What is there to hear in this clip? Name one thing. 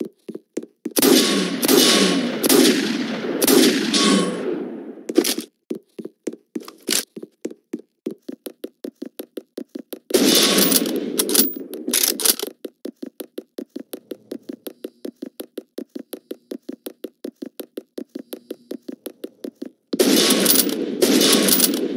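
Rifle shots fire in loud bursts with echoing tails.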